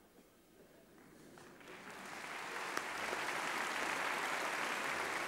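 A large audience applauds, swelling to steady clapping.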